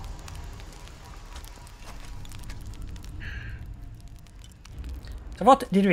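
A campfire crackles and pops softly.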